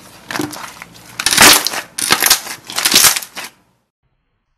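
Sticky slime squishes and crackles.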